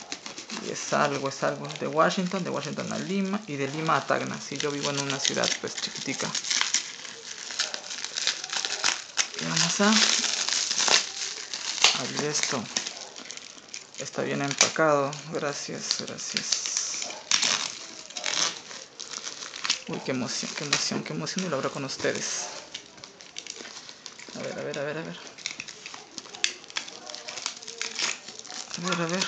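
Plastic wrap crinkles and rustles as hands handle a parcel.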